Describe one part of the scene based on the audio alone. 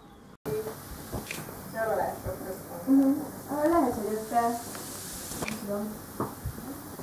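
A teenage girl talks.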